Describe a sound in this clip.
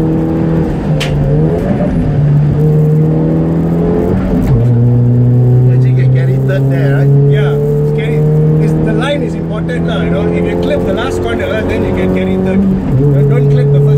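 A racing car engine drops in pitch as the driver shifts gears.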